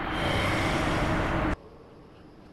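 A burst of fire roars loudly and stops abruptly.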